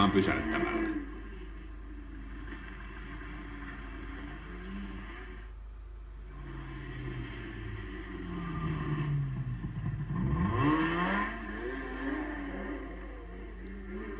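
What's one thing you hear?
A snowmobile engine roars and revs as it drives past.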